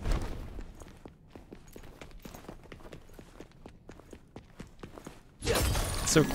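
Footsteps thud quickly on stone stairs.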